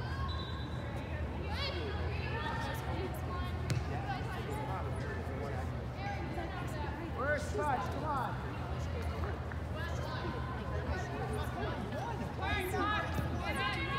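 A ball is kicked with dull thuds.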